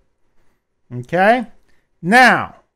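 A middle-aged man speaks calmly, close to a microphone.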